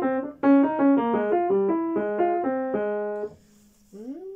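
A piano plays a quick run of notes.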